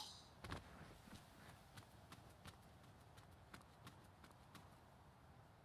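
Quick footsteps run over ground and stone paving.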